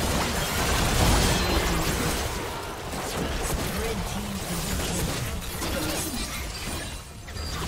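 Spell effects and attacks crackle and boom in a game battle.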